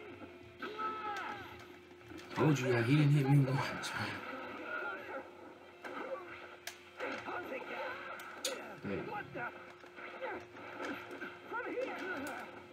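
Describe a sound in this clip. Punches and blasts crash and thud from a fighting game, heard through a television speaker.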